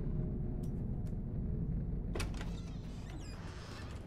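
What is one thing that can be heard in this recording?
Wooden cupboard doors creak open.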